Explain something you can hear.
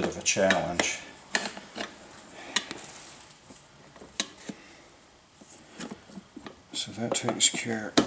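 A metal tool clicks and clanks against a wheel hub.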